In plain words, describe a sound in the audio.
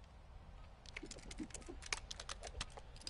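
A pistol's metal parts click and clatter as it is handled.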